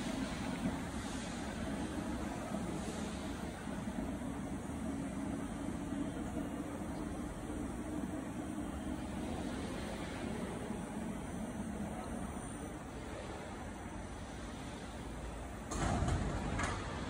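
A machine lift hums steadily as its platform slowly lowers.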